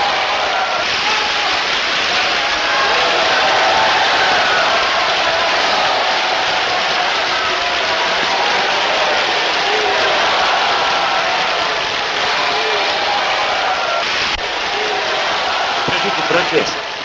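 A large crowd applauds and cheers loudly in a big echoing hall.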